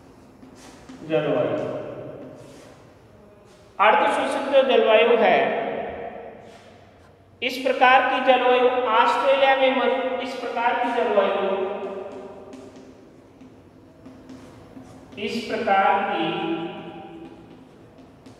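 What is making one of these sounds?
A man speaks clearly and steadily, as if lecturing.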